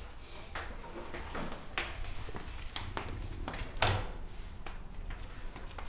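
Footsteps click across a hard floor.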